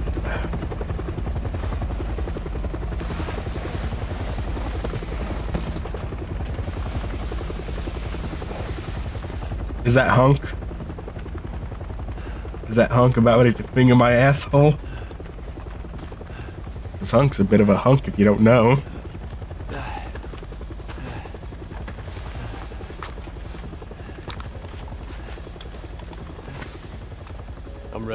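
Helicopter rotors thump and roar overhead.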